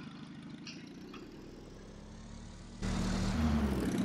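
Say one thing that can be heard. An old truck engine idles with a low rumble.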